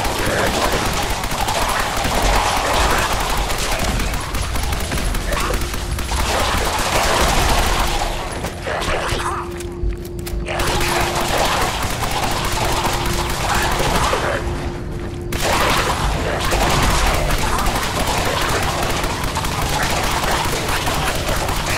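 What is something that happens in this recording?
Fiery explosions boom and crackle in quick succession.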